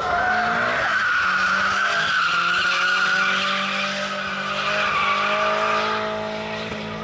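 Tyres screech on asphalt as a car drifts.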